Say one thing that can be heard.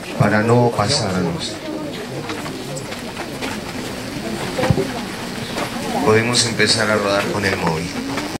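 Men talk and call out loudly nearby, outdoors.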